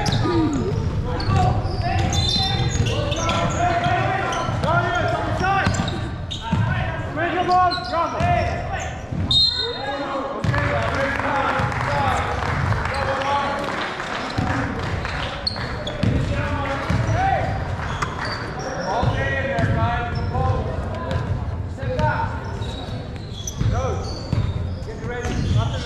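Young players shout and call out to each other in a large echoing hall.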